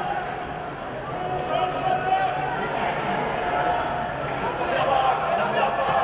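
A distant stadium crowd chants and cheers outdoors.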